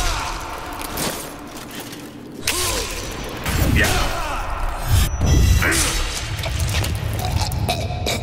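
Swords clang and strike against shields and armour.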